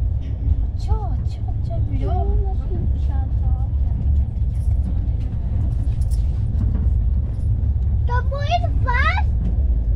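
Young boys talk and call out excitedly close by.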